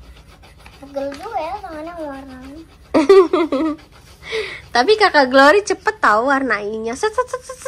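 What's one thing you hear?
A young child speaks in a high, lively voice close by.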